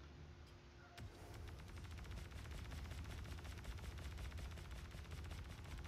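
A laser cannon fires in rapid bursts.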